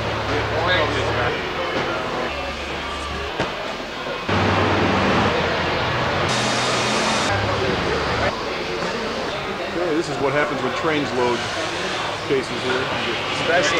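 Several men talk nearby in a large echoing hall.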